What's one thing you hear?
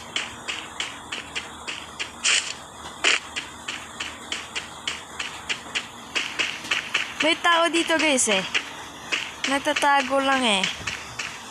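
Footsteps run quickly over grass at a steady pace.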